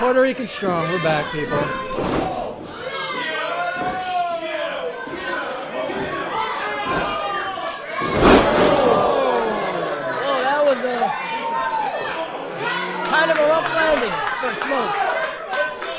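A crowd of men and women shouts and cheers in an echoing hall.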